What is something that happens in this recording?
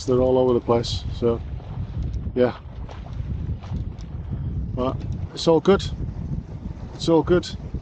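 Wind rushes steadily over open water.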